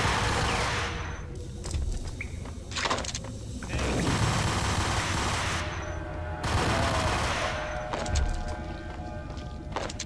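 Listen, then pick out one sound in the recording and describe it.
Guns fire in rapid bursts, echoing off hard walls.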